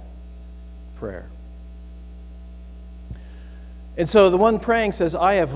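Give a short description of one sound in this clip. A middle-aged man speaks calmly through a microphone in an echoing room.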